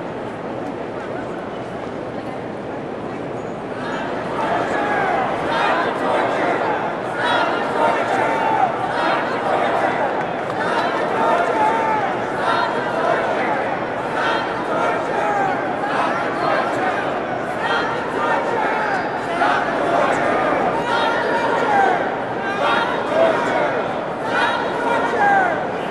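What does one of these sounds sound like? A large crowd murmurs and chatters in a big echoing hall.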